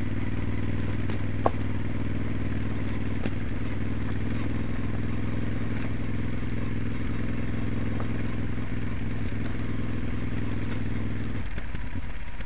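A Moto Guzzi Stelvio transverse V-twin motorcycle rides at steady throttle.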